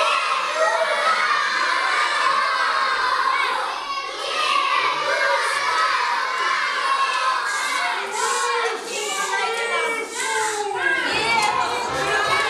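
Music plays through a loudspeaker in an echoing hall.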